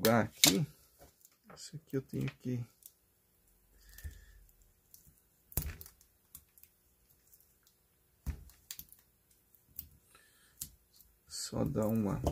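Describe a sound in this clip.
A small electronic device clicks and knocks softly as it is handled.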